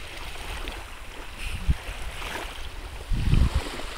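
A toddler splashes through shallow water.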